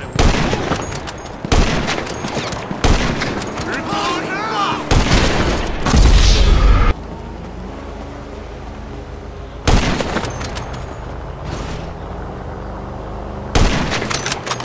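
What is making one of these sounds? A sniper rifle fires loud booming shots that echo away.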